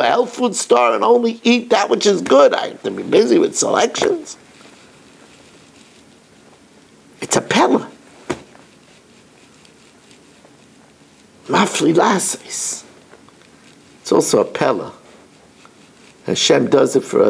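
An elderly man speaks with animation close to a microphone, pausing between phrases.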